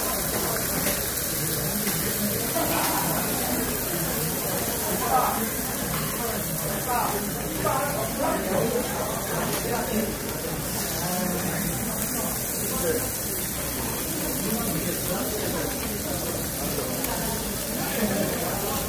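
Metal tongs clink and scrape against a grill plate.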